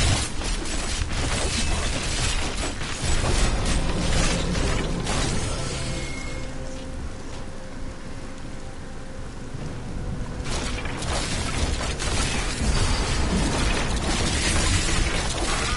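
Bones crunch and rattle as skeletons are smashed.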